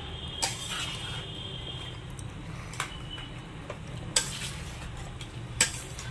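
Raw meat squelches as it is mixed.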